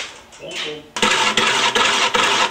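A wood lathe whirs as it spins a large piece of wood.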